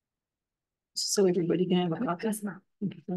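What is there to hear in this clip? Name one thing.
A woman speaks into a microphone, heard as if over an online call.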